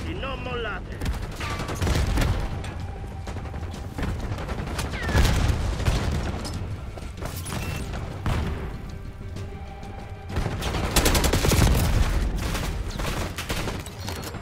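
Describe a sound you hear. Rifle shots ring out in loud bursts.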